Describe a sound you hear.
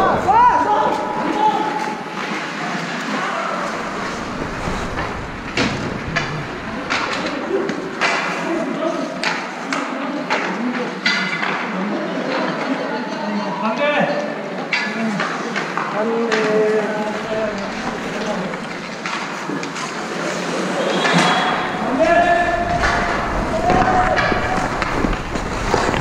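Young men shout and call out across an echoing rink.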